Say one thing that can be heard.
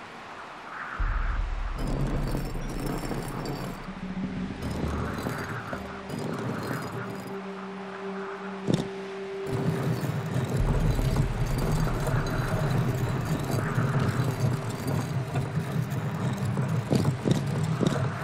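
Heavy stone discs grind and rumble as they turn.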